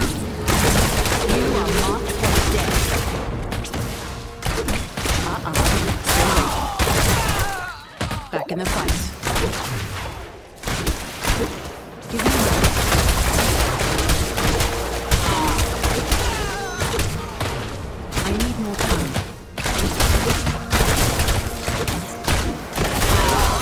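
Game combat sounds clash and burst with magic blasts.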